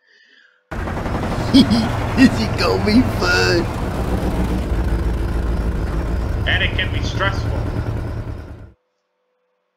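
A tow truck's engine rumbles low and steady.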